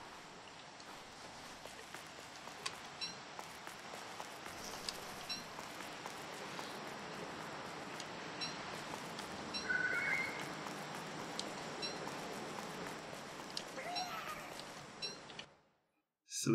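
Soft footsteps patter steadily on hard ground.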